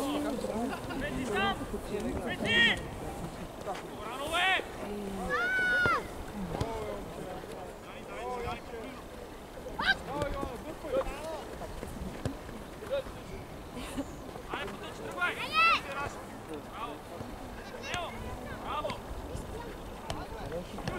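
Children shout and call out to each other outdoors.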